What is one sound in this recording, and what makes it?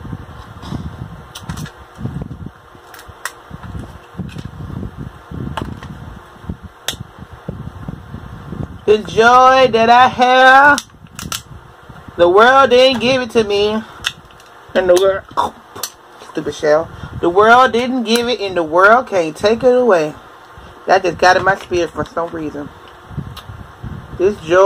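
Crab shells crack and snap between fingers, close to the microphone.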